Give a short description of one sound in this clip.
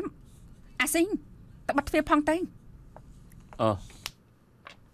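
A woman speaks loudly and sharply nearby.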